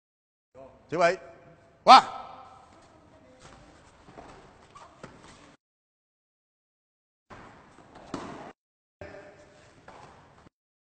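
People thud onto a padded mat.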